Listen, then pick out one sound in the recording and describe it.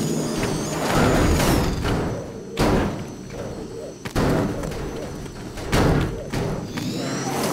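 A car tumbles over with heavy thuds and metal scrapes.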